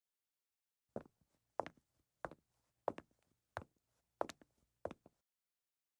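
Footsteps tap lightly on a floor.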